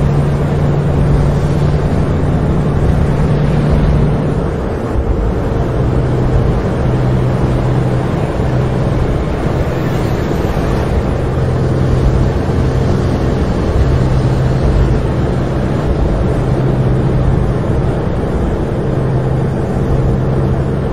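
A heavy truck engine drones steadily.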